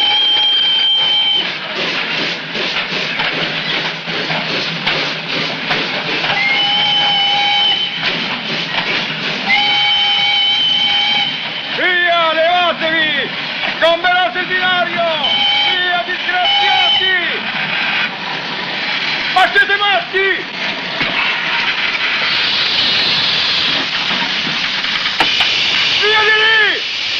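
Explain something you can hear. Steam hisses loudly from a locomotive.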